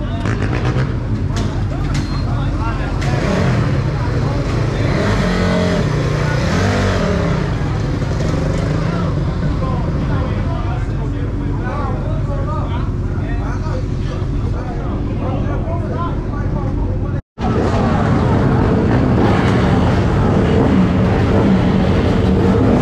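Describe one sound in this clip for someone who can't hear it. Dirt bike engines idle and rev loudly nearby, outdoors.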